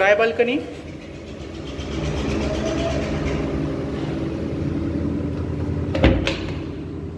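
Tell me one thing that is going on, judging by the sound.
A sliding door rolls along its track.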